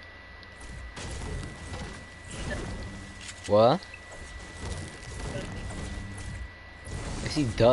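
A pickaxe repeatedly chops into a tree trunk with hollow thuds.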